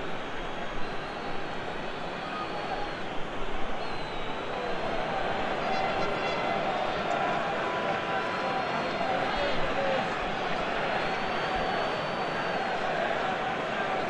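A large stadium crowd roars and cheers steadily, swelling louder.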